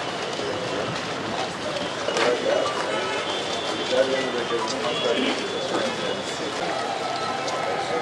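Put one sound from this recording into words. A crowd of people murmurs and shuffles outdoors.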